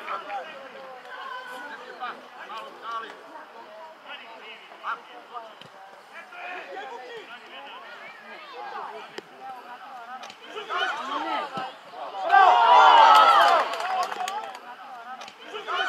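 Young players shout and call out across an open field.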